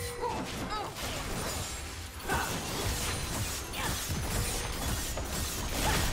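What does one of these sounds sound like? Game spells burst and crackle during a fight.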